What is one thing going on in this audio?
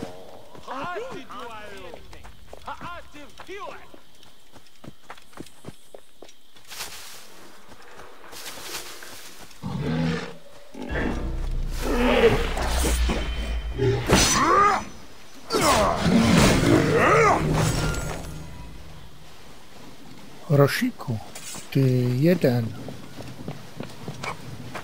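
Footsteps run over sandy ground.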